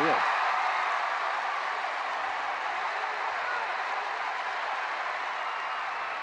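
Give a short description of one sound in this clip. A large stadium crowd roars and cheers steadily, then slowly quietens a little.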